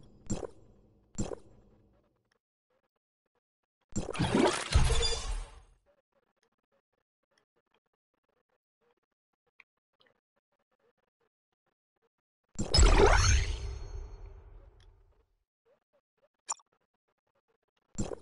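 Short menu clicks sound now and then.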